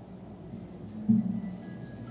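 An accordion plays a short chord.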